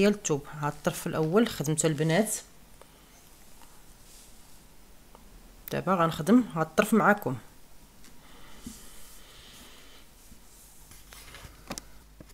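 Cloth rustles softly as hands handle and smooth it.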